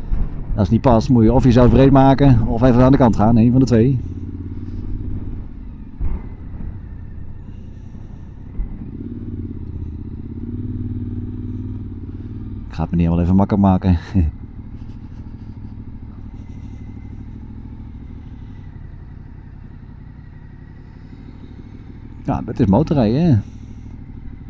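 A motorcycle engine revs up sharply in short bursts.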